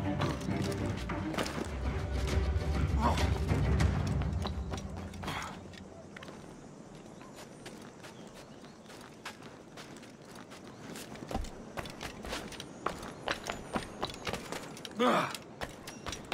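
Hands grab and scrape against stone while climbing.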